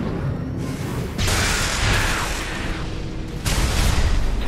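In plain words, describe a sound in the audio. A large explosion booms and rumbles.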